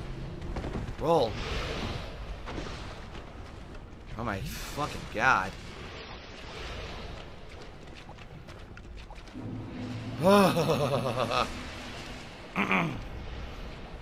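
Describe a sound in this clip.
A man speaks and exclaims with animation into a close microphone, in short bursts.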